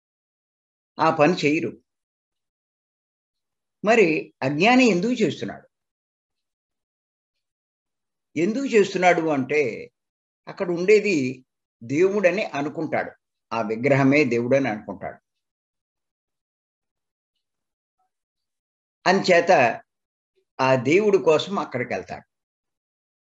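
An elderly man speaks with animation through an online call, in bursts with pauses.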